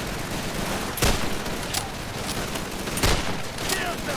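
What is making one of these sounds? Rifle shots crack sharply.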